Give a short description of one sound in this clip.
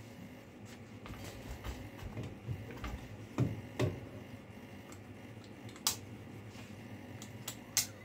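A piece knocks and clicks as it is fitted into a machine's holder.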